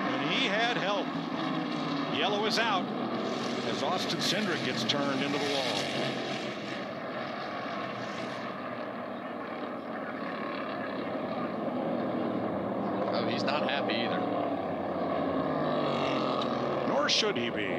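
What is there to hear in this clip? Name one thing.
Race car engines roar loudly as cars speed past.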